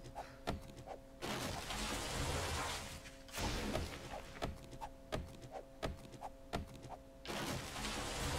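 An axe chops into a tree trunk.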